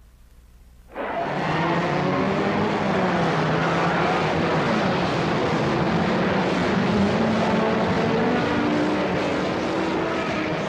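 Many racing car engines roar together.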